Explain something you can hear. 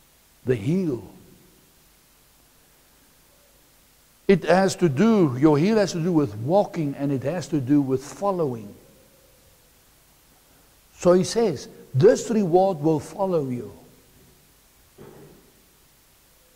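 A middle-aged man speaks calmly and clearly into a clip-on microphone, in short bursts with pauses.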